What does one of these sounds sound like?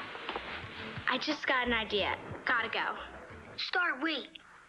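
A young girl talks on a phone with animation.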